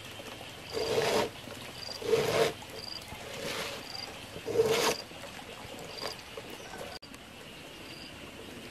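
Rope rustles and swishes as it is pulled and coiled.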